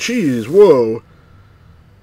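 A middle-aged man speaks into a microphone close by, with animation.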